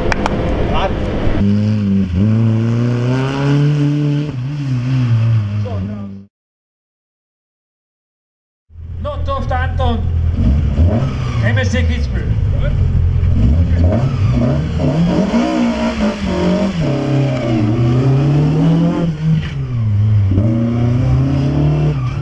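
A car engine revs hard, its pitch rising and falling again and again.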